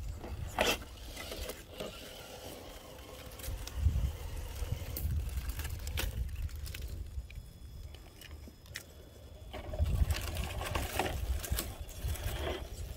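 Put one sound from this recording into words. Plastic tyres scrape and knock against rock.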